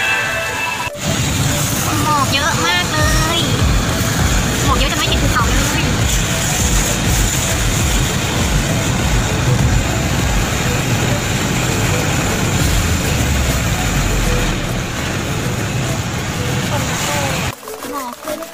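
Wind rushes loudly past a moving car window.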